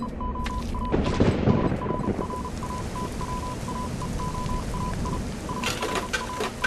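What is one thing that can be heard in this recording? Fire bursts into a loud roaring whoosh.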